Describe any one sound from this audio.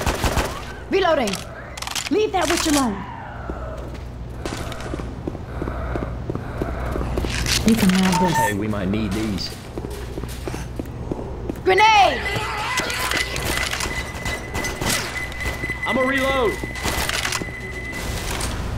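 A rifle fires in rapid bursts of sharp, loud shots.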